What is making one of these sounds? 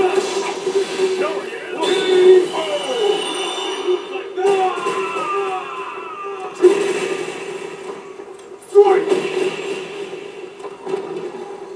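Punches and kicks from a fighting game land with heavy thuds through a television speaker.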